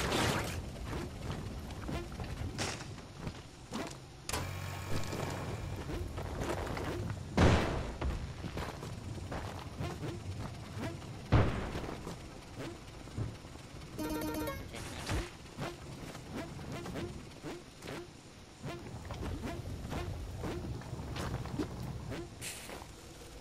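Short video game sound effects of whip cracks, thumps and chimes play throughout.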